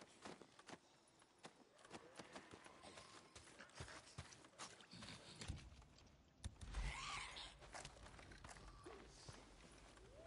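Footsteps crunch on gravel and dry grass.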